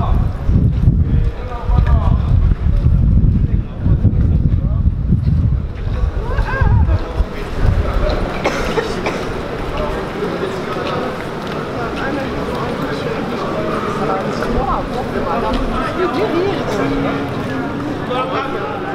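A crowd of people talks and murmurs nearby.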